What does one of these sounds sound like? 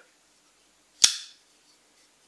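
A folding knife blade snaps open with a sharp click.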